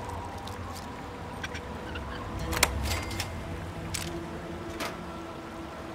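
Metal lock picks click and scrape inside a lock.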